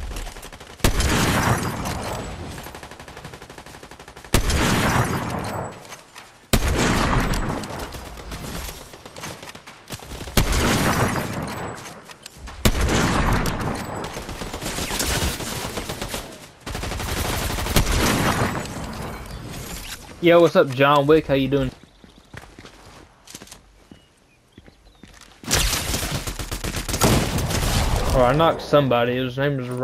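Rifle shots crack loudly, each followed by a long echoing ring.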